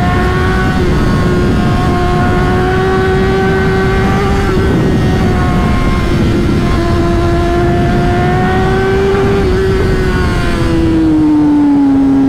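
A motorcycle engine hums steadily up close, its pitch rising and falling slightly.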